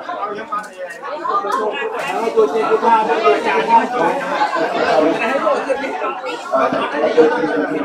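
Dishes clink as food is served.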